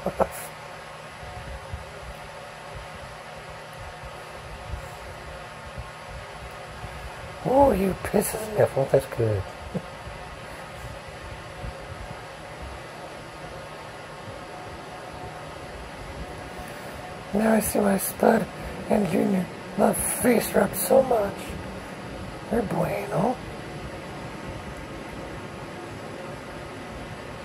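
A hand rubs a cat's soft fur.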